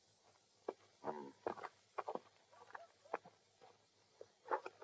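A young man speaks, close by.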